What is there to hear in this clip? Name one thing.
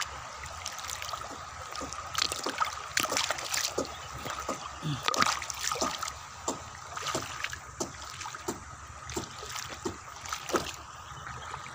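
Water drips and splashes from a stone lifted out of the water.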